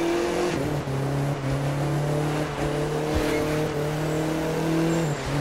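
Tyres hiss over a snowy road.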